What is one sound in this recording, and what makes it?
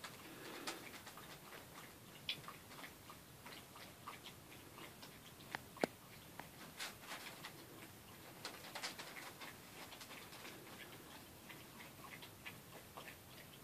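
Small puppies scuffle and play on soft carpet.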